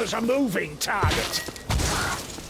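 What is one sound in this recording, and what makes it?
A heavy gun fires with deep booms.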